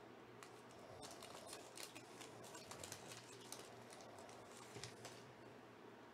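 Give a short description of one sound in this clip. A foil wrapper crinkles as hands tear it open.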